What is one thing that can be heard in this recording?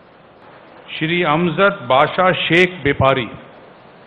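An older man speaks steadily through a microphone.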